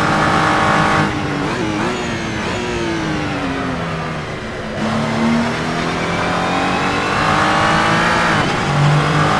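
A racing car engine drops in pitch as the car slows, then revs up again.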